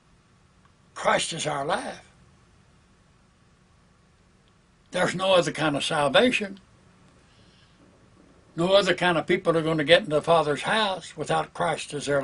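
An elderly man speaks calmly and slowly into a nearby microphone, with pauses between phrases.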